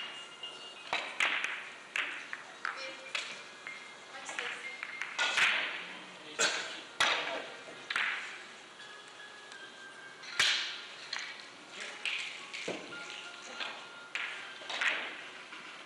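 Billiard balls click sharply against each other in an echoing hall.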